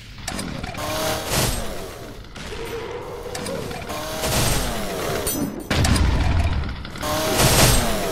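A sword swings and strikes with a sharp whoosh.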